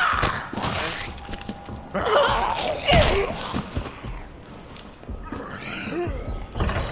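A young woman screams and wails close by.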